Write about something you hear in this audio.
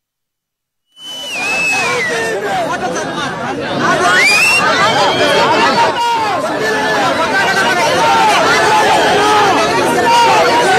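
A large crowd of men shouts and cheers loudly outdoors.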